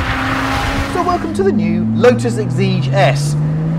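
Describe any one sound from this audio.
A man talks with excitement close by over the engine.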